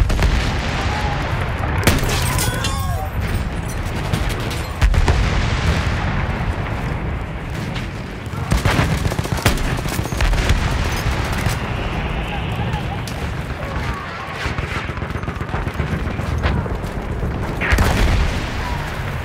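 Gunfire crackles across a battlefield.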